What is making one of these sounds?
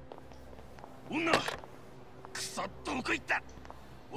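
Men shout urgently.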